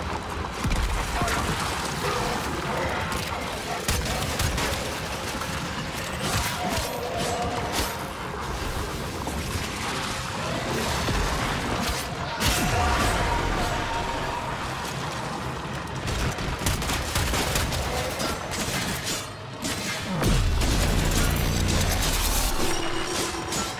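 Heavy blasts boom and rumble.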